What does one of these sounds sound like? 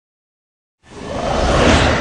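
A wave crashes and roars.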